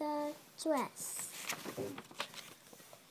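A paper page rustles as it turns.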